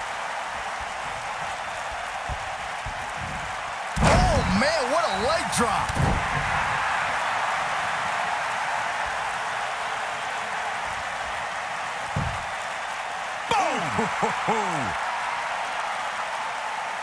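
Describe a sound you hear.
A large crowd cheers and murmurs steadily in an echoing arena.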